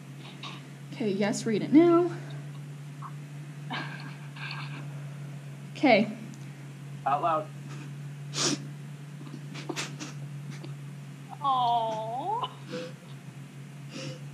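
A young woman sobs and whimpers quietly, close by.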